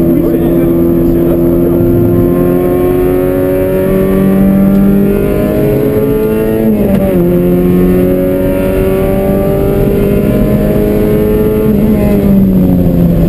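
A car engine roars loudly from inside the cabin, rising in pitch and dropping sharply at each gear change.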